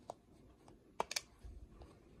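A plastic battery door clicks and snaps shut.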